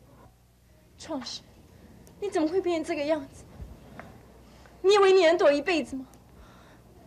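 A young woman speaks urgently up close.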